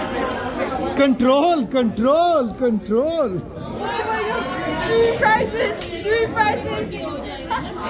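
A young woman talks and laughs excitedly close by.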